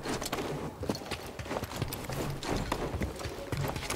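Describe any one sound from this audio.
Hands scrape and grip on rough bark while climbing.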